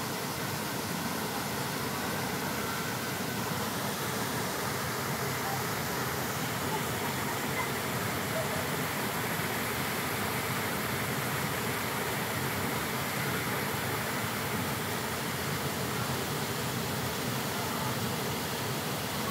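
A waterfall rushes steadily into a pool.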